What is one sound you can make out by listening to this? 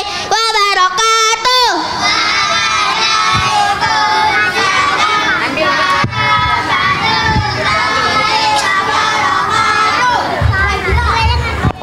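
A group of young children sing together loudly through a microphone and loudspeakers outdoors.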